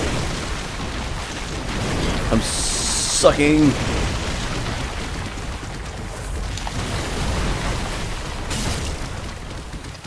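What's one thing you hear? A large creature growls and roars.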